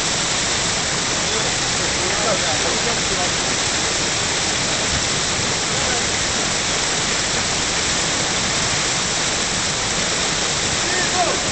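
Water rushes loudly and steadily nearby.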